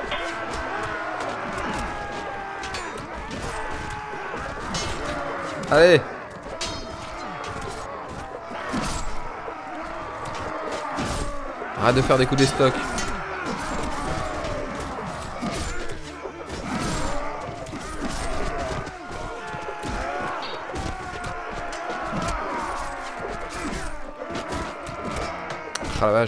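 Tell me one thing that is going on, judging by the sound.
Swords clash and clang in a noisy battle.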